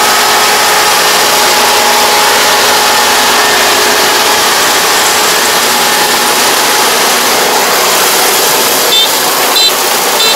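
A combine harvester engine roars steadily nearby.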